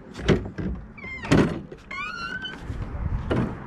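A heavy wooden door creaks loudly on its hinges as it swings open.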